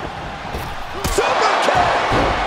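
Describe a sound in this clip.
A body slams heavily onto a wrestling ring.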